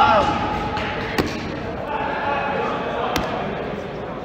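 Rubber balls thud and bounce on a hard floor.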